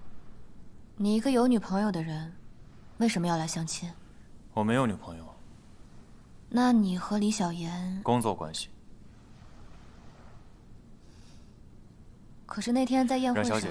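A young woman speaks calmly and questioningly.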